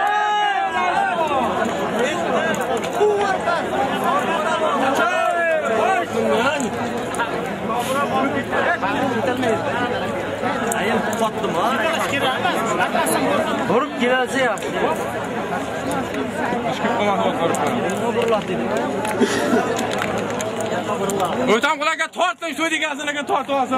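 A crowd of men shouts and chatters loudly outdoors.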